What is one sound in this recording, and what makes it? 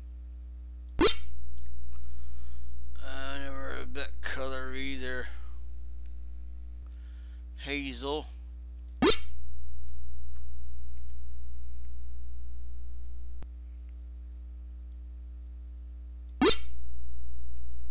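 A computer game plays a short sharp tone each time a word is found.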